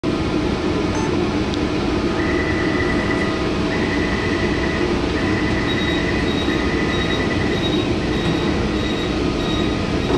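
A train's motors hum and rumble steadily.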